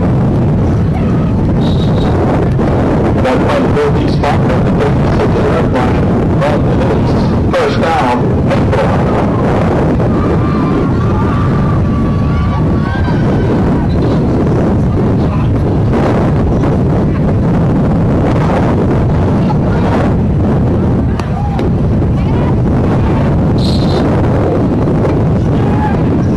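People on the sidelines of an outdoor football field talk and call out.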